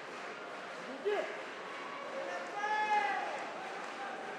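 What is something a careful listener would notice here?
A young man shouts sharply during a fighting exchange.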